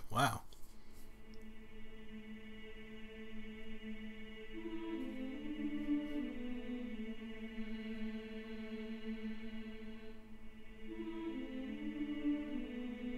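A harp plays a slow, gentle melody.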